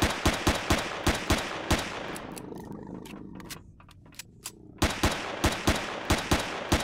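A gun fires in rapid bursts, echoing in a hard-walled space.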